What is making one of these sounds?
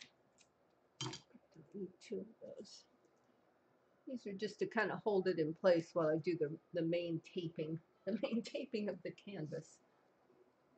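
An elderly woman talks calmly into a nearby microphone.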